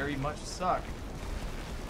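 A young man speaks briefly and casually into a close microphone.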